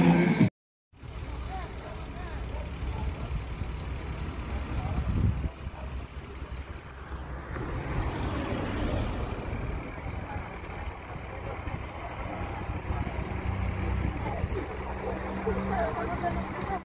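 Truck engines idle nearby.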